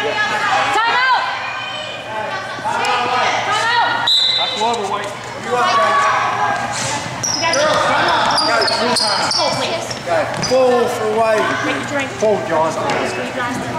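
Young girls shout and cheer in a large echoing gym.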